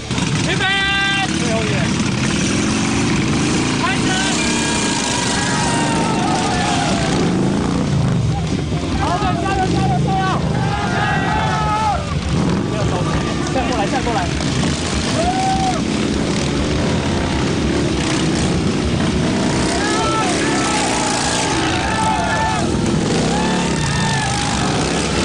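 Motorcycle engines rumble and rev close by.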